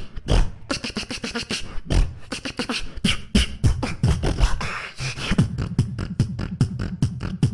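A young man beatboxes fast, punchy beats into a microphone through loudspeakers.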